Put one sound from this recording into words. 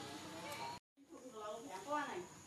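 A monkey squeals in short high calls.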